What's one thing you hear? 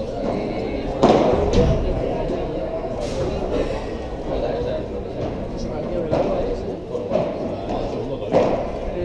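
Padel balls knock sharply off rackets in a large echoing hall.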